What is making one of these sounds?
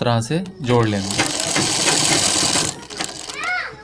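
A sewing machine whirs and rattles as it stitches.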